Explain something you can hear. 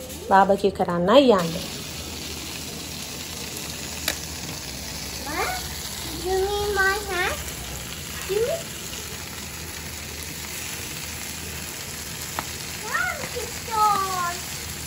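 Meat sizzles and crackles over hot charcoal.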